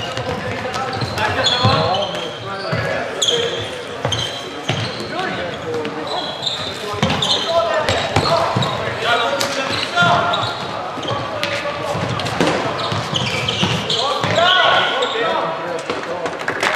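Sneakers squeak on a hard indoor floor.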